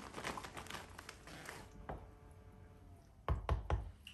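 A wooden spoon stirs food in a metal pot.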